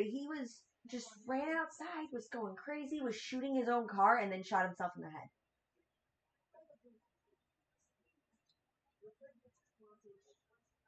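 A young woman talks with animation, close to a microphone.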